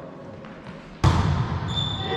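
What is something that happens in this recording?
A volleyball is struck with a sharp smack in an echoing hall.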